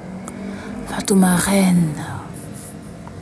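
A young woman speaks close to a phone microphone.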